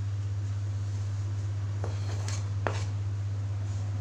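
Chopped herbs are scraped off a board into a glass bowl.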